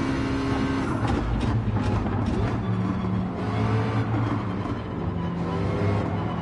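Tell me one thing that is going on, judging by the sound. A racing car engine drops low as the car brakes hard into a corner.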